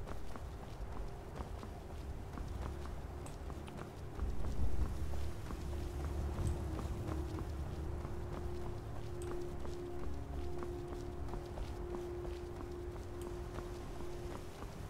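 Footsteps crunch steadily on stony ground.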